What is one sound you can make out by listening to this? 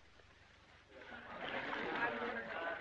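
Water splashes and trickles into a bath.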